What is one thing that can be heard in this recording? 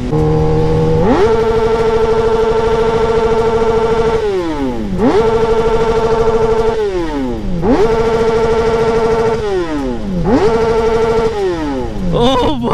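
A motorcycle engine dips in pitch briefly at each gear change.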